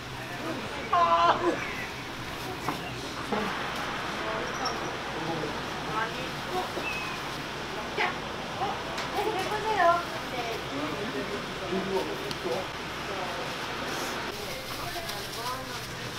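A woman talks casually nearby.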